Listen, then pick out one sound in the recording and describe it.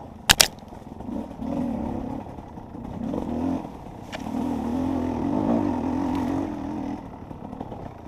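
A dirt bike engine revs up and down as the bike climbs a rough trail.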